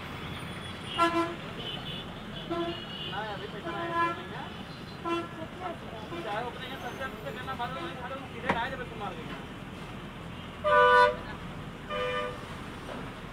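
Auto rickshaw horns honk repeatedly nearby.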